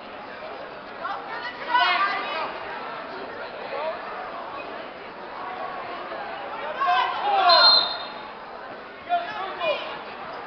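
Spectators shout and cheer in an echoing hall.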